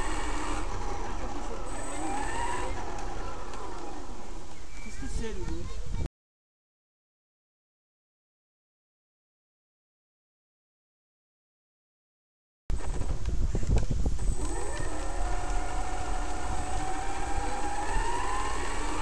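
A small electric motor whines, rising and falling in pitch.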